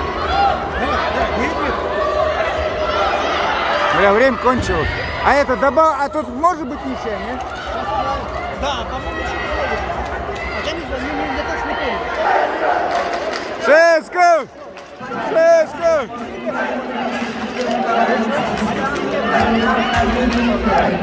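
A crowd of fans chants loudly in a large echoing arena.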